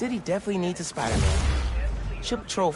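A shimmering magical whoosh bursts out.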